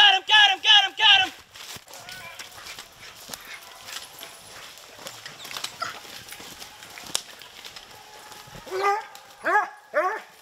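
Hounds bay loudly in short, rising howls nearby.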